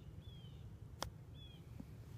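A golf club strikes a ball with a short, sharp click.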